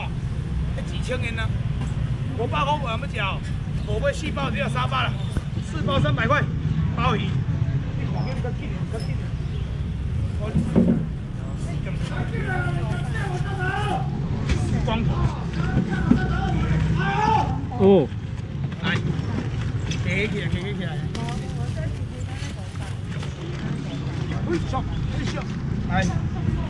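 A young man talks loudly with animation to a crowd outdoors.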